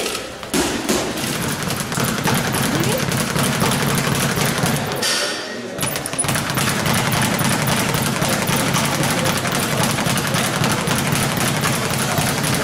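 A speed bag rattles rapidly against its board.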